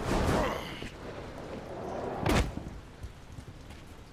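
A figure lands hard with a thud.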